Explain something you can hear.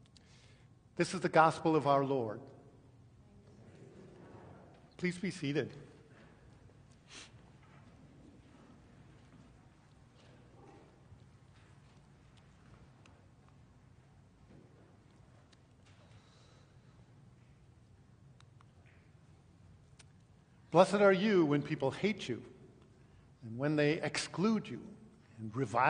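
A middle-aged man speaks calmly through a microphone in an echoing hall, with long pauses.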